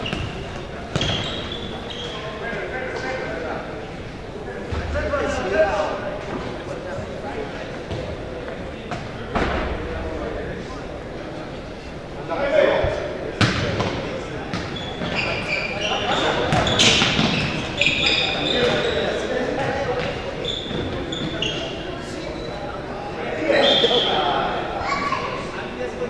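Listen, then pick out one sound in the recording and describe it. Players shout and call to each other across a large echoing gym.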